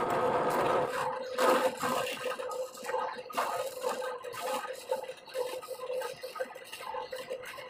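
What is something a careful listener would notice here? A drill bit grinds into wood in short bursts.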